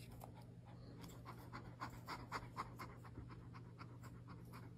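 A cat yowls loudly, close by.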